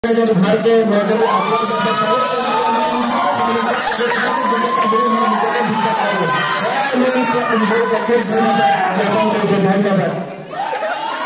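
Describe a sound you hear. A young man sings into a microphone over loudspeakers.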